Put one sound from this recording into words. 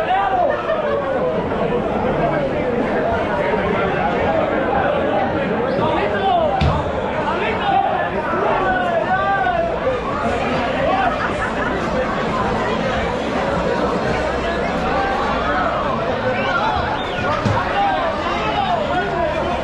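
A crowd of men talks and shouts loudly all around, outdoors.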